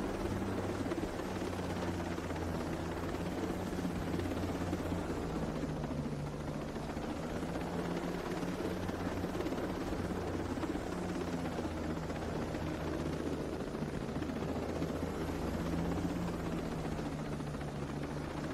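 A helicopter's engine and rotor blades roar steadily from inside the cabin.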